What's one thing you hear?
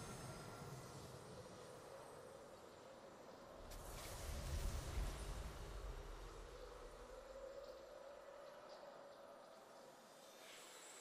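Triumphant victory music swells with a deep boom.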